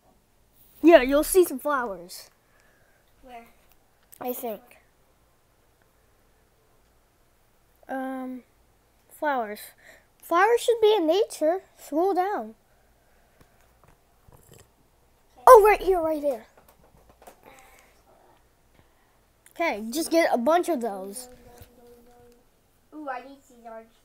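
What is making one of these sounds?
A child talks with animation close by.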